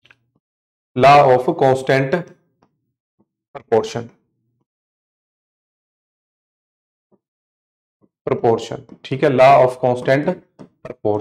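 A man speaks clearly and explains at a steady pace, close to a microphone.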